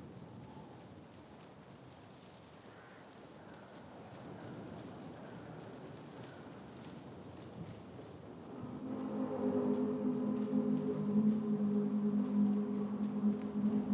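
Small footsteps rustle through tall grass.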